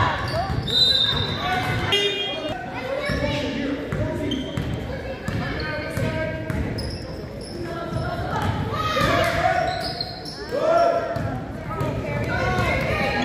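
Girls shout and call out across an echoing hall.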